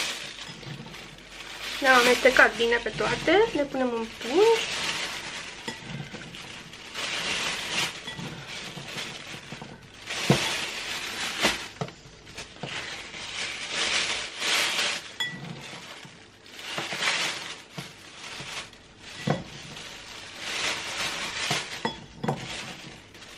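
Chopped vegetables clatter softly as a hand scoops them from a bowl.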